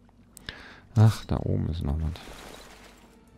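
A shovel digs into loose earth with a crunch.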